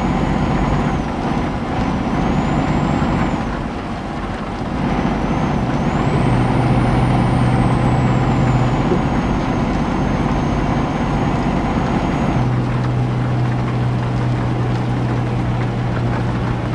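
Windscreen wipers sweep back and forth.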